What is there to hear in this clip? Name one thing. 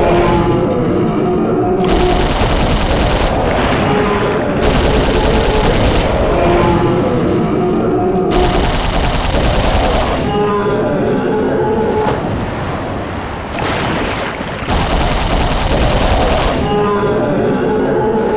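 Water splashes as a creature bursts from the sea.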